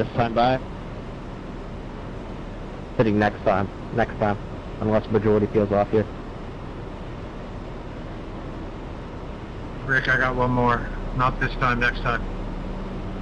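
A man talks in short bursts through a headset microphone.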